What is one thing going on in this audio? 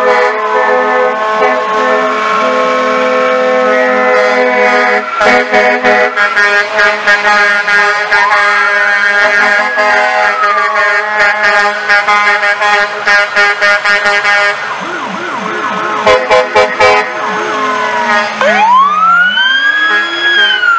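Truck air horns blare loudly in long and short blasts.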